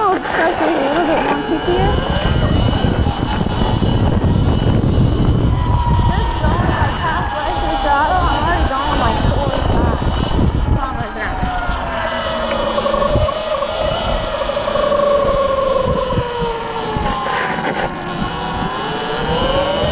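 An electric motor whines, rising and falling in pitch as the bike speeds up and slows.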